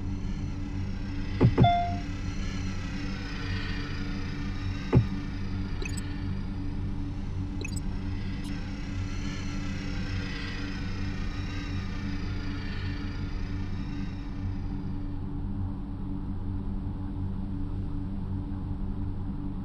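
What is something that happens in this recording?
A sports car engine idles steadily.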